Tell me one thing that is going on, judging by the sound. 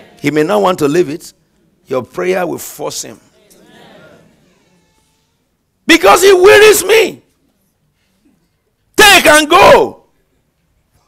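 A man preaches loudly through a microphone in bursts, with pauses between phrases.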